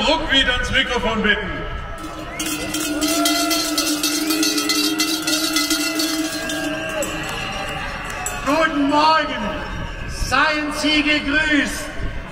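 A man speaks loudly over outdoor loudspeakers.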